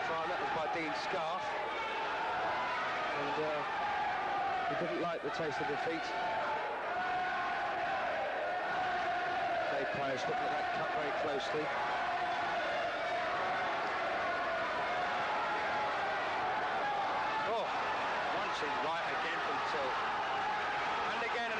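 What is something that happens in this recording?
Boxing gloves thud on bodies now and then.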